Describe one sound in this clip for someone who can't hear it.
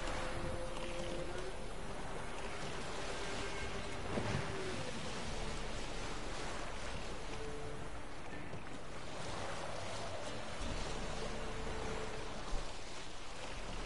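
Water splashes against the hull of a sailing boat.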